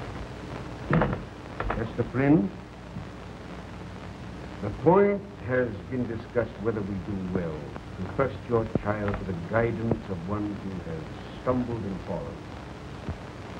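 An elderly man speaks firmly.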